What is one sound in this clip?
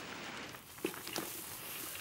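A pot of stew simmers and bubbles softly.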